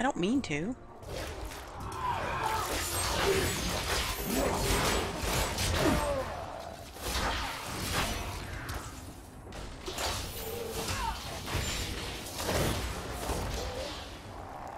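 Spell blasts and clashing weapons crackle and boom in a video game battle.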